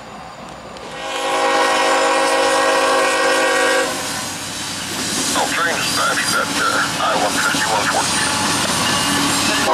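Diesel locomotives rumble past close by.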